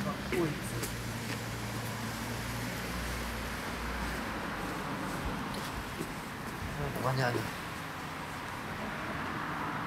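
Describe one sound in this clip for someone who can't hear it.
A young man speaks quietly outdoors at night.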